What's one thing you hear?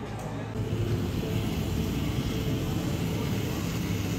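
A whipped cream can hisses as cream sprays out.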